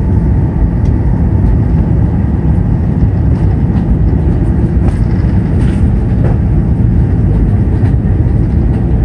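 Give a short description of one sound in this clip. Jet engines roar steadily inside an airplane cabin in flight.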